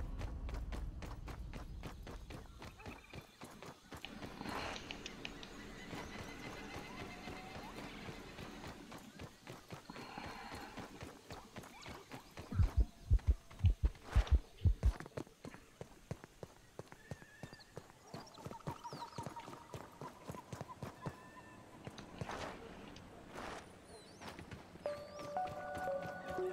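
Quick footsteps patter on dirt.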